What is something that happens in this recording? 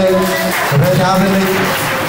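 A man speaks through a microphone over loudspeakers.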